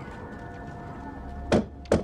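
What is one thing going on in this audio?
A hand presses onto wooden floorboards.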